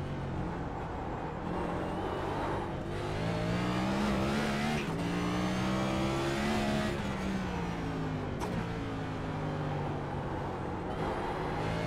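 A race car engine roars loudly, revving up and down through gear changes.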